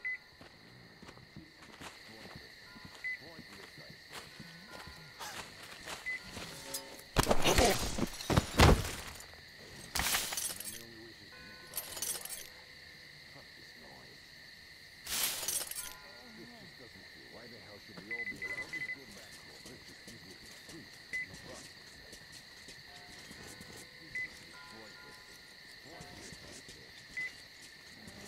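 Footsteps crunch on dry leaves.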